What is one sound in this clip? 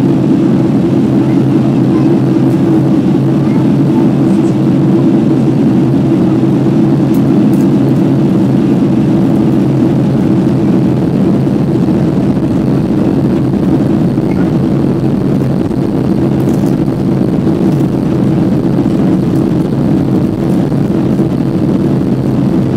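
Air rushes past an airliner's wing with a steady whoosh.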